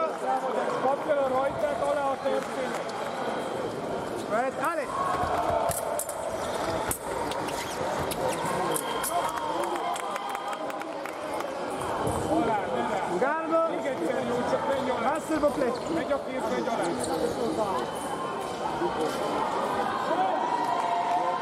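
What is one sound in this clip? A crowd chatters and shouts in a large echoing hall.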